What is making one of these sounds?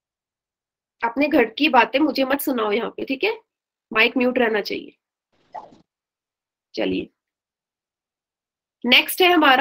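A young woman speaks calmly into a microphone, as if explaining.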